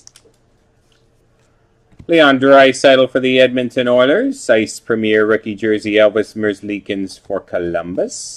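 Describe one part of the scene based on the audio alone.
Trading cards slide and shuffle against each other.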